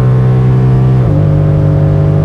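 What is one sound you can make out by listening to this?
A car engine drops sharply in pitch as the gear shifts.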